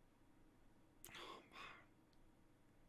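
A young man speaks briefly, close to a microphone.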